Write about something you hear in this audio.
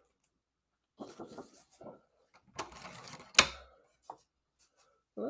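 Card stock rustles and slides as it is handled.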